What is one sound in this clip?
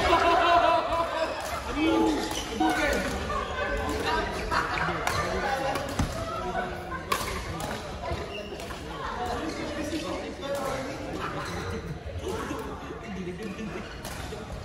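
Voices of several people chatter in a large echoing hall.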